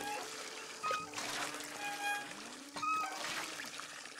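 A hand pump handle squeaks as it is worked up and down.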